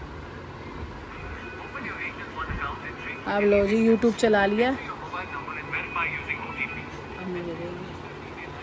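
A phone plays music and voices faintly.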